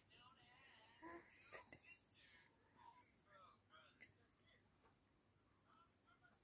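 A baby babbles softly close by.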